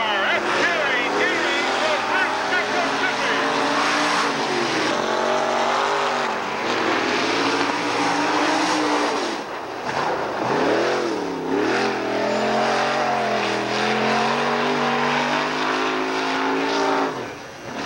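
A race car engine roars and revs as the car speeds by.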